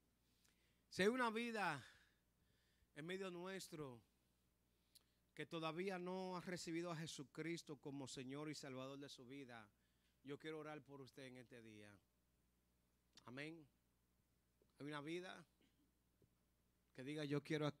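A man speaks with feeling into a microphone over loudspeakers, with long pauses.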